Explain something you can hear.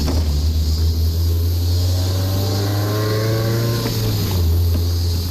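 Wind rushes past an open-top car.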